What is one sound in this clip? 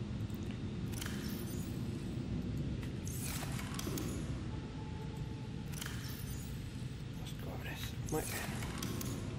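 A locker door swings open and shut with soft clunks.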